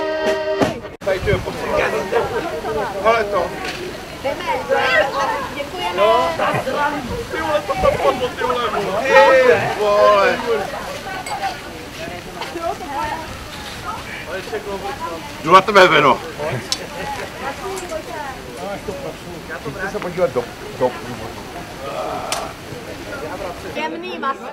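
A crowd of men and women chat and call out loudly outdoors.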